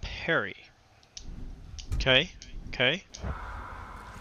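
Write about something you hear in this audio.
Menu selections blip with short rising tones.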